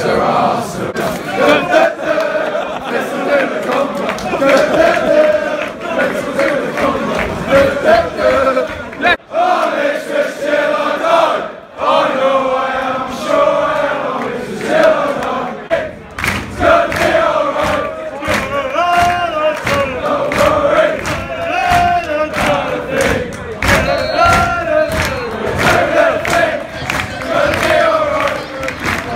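A large football crowd of men chants in unison under a stand roof.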